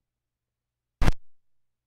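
A stylus drops onto a record with a sudden loud thump.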